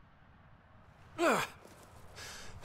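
A young man grunts with effort.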